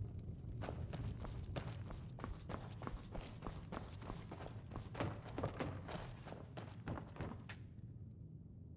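Footsteps thump quickly on wooden floorboards and stairs.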